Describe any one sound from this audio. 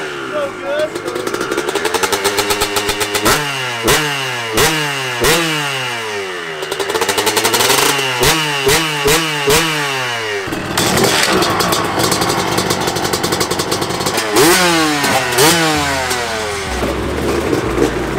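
A dirt bike engine revs hard up and down close by.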